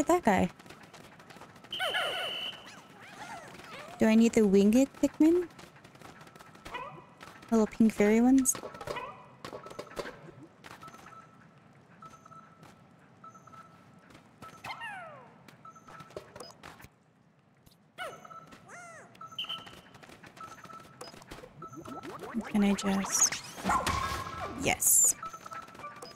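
Soft game chimes and blips ring out now and then.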